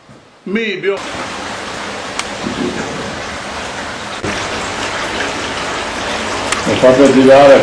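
Water rushes and splashes steadily around a turning wooden water wheel.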